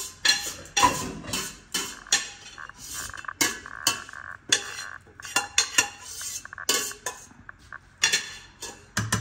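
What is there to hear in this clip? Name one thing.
Metal utensils clink and scrape against pans and dishes.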